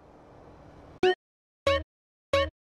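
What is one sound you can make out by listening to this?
A menu chimes with short tones.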